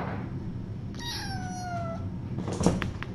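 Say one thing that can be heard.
A kitten mews briefly.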